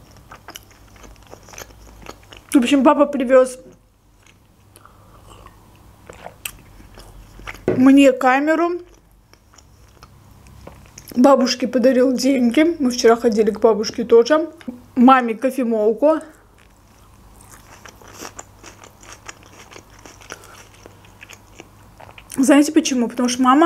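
A young woman chews and smacks her lips close to a microphone.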